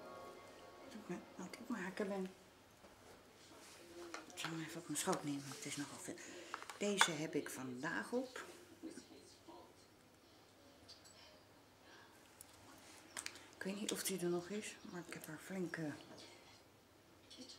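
A middle-aged woman talks calmly close to the microphone.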